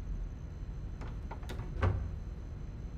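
A wooden cabinet door knocks and swings open.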